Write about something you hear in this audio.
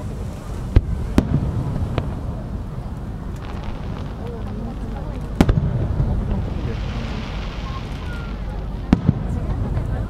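Fireworks burst with loud booming bangs that echo across open ground.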